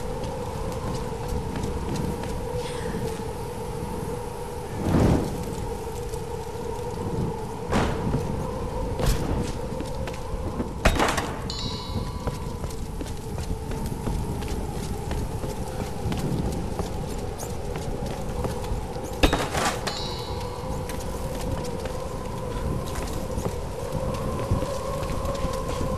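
Footsteps crunch on rubble.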